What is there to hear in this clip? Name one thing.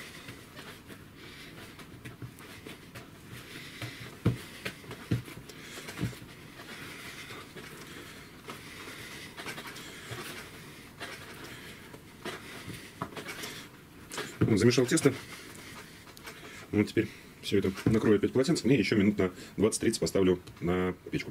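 Soft dough squishes and slaps as hands knead it in a bowl.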